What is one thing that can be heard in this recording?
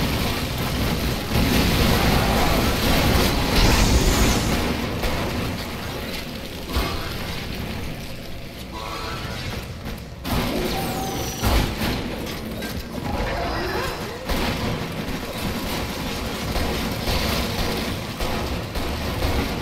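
Gunfire and explosions blast in rapid bursts.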